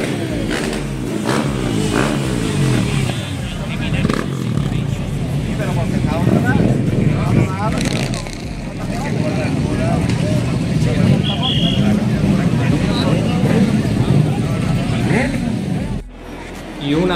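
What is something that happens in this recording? Motorcycle engines rumble and idle.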